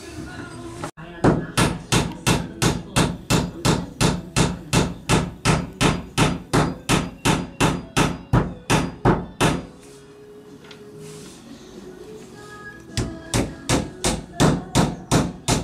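A hatchet chops rapidly and repeatedly into a wooden beam.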